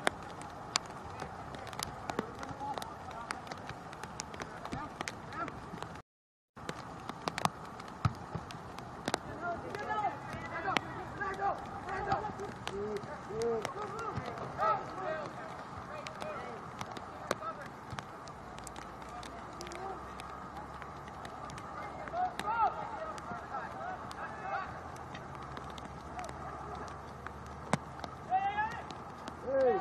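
Players shout and call to each other across an open field, heard from a distance.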